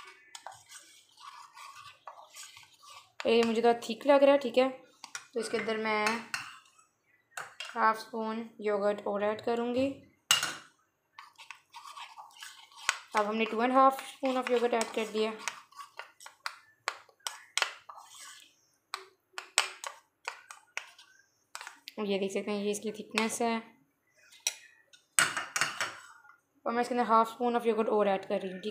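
A metal spoon scrapes and clinks against a bowl while stirring.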